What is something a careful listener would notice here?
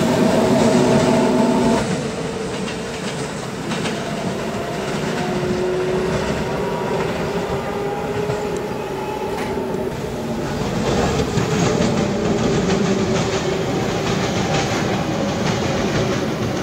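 An electric commuter train's traction motors whine as the train slows.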